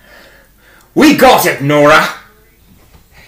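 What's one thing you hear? A young man speaks loudly and theatrically, close by.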